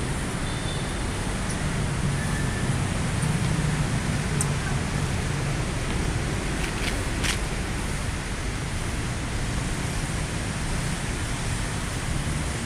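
City traffic rumbles steadily below outdoors.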